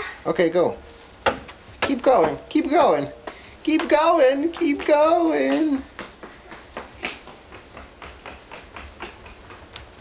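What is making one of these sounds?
A child's footsteps patter quickly on concrete.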